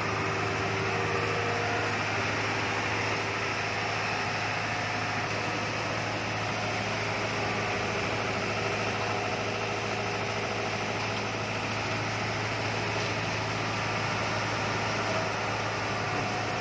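A heavy machine engine hums steadily and loudly.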